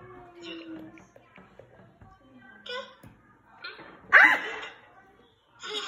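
A baby babbles and squeals through a phone's speaker.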